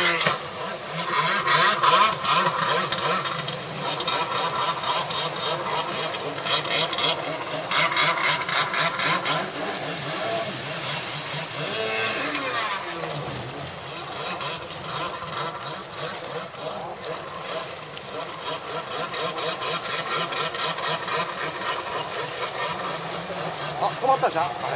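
A jet ski engine roars and revs up and down nearby.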